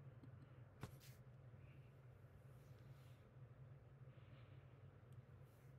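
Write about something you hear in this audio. Hands rub against a man's hair and face.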